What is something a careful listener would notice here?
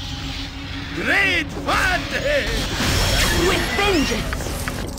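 Small creatures shriek and snarl in a fight.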